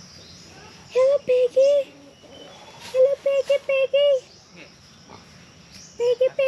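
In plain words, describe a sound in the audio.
Chickens cluck loudly in short, repeated bursts nearby.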